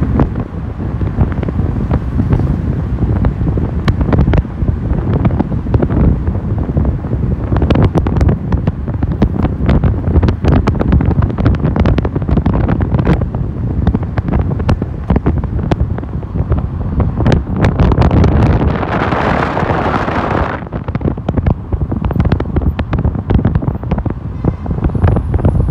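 Wind rushes and buffets loudly past an open car window.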